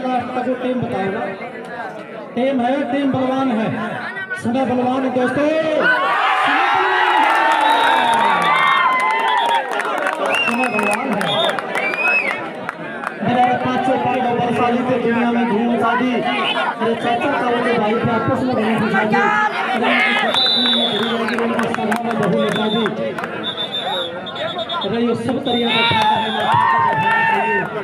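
A crowd of young men shouts and cheers loudly outdoors.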